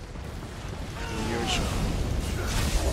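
A creature shrieks.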